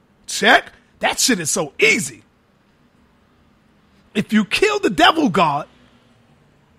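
A man speaks with animation into a microphone, in short bursts.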